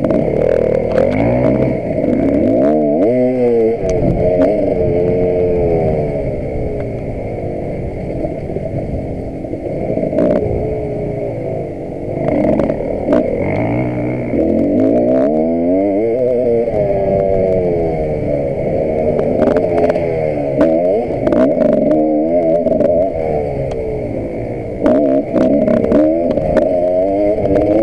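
A motorcycle rattles and thumps over a bumpy dirt track.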